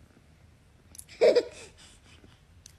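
A baby coos softly up close.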